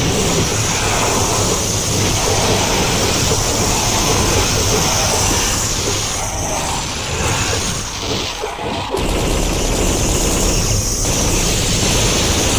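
A gun fires rockets with sharp whooshes.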